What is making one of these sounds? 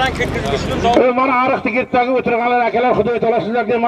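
A man speaks loudly into a microphone through a loudspeaker.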